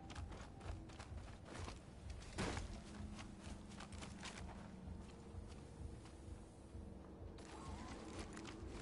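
Footsteps thud quickly on the ground as a game character runs.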